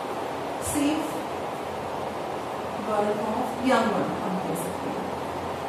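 A woman speaks calmly, with short pauses.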